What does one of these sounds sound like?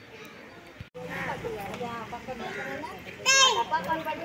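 A woman speaks to a group.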